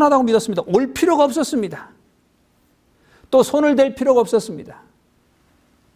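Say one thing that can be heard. A middle-aged man speaks calmly into a close microphone, lecturing in short phrases.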